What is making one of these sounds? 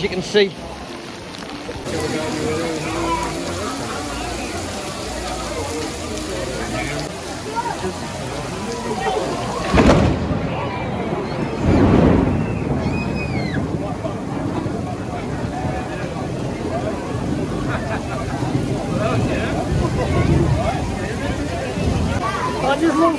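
Heavy rain pours steadily onto a wet street outdoors.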